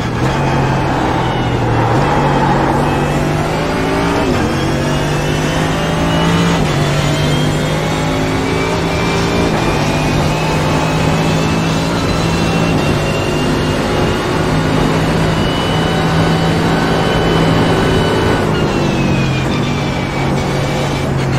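A race car engine roars loudly, revving up through the gears and shifting with sudden drops in pitch.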